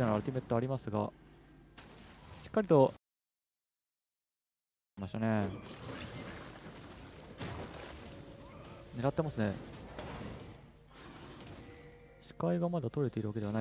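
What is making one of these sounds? A young man commentates with animation into a microphone.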